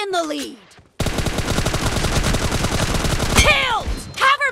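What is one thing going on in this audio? Automatic gunfire rattles in a rapid burst.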